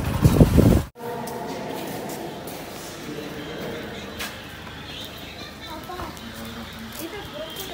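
Rain falls steadily on wet pavement.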